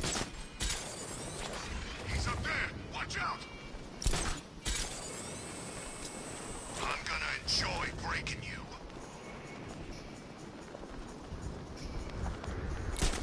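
Wind rushes steadily past during a glide, with sudden swooshes.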